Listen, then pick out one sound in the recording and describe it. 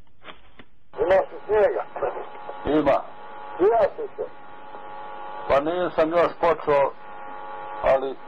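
A man talks over a crackly phone line.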